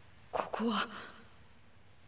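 A young man groans softly.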